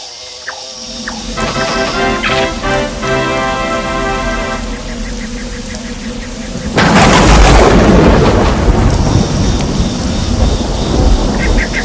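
Rain patters down steadily and grows heavier.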